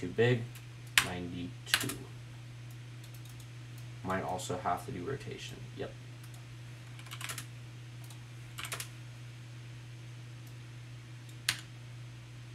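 A computer mouse clicks now and then.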